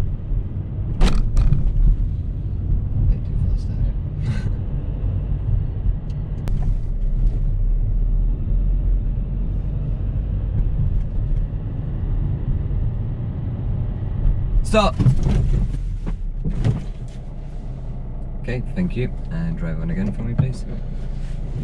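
A man speaks calmly from close by inside the car.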